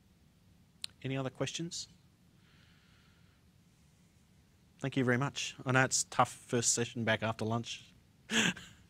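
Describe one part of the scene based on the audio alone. A man speaks through a microphone, pausing between phrases.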